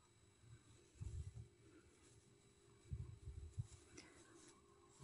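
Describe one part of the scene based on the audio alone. Yarn rustles softly as a crochet hook pulls loops through it.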